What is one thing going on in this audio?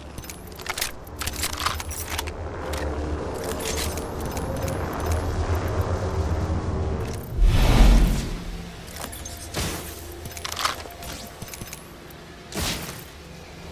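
Short clicks and clinks sound as gear is picked up in a game.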